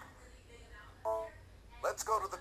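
A handheld game console plays a short electronic chime.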